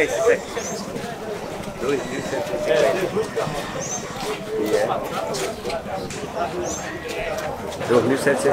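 Cattle shuffle and trample in wet mud.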